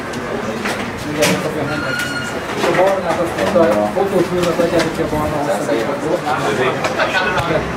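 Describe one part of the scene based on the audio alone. Several men and women chatter in a crowd.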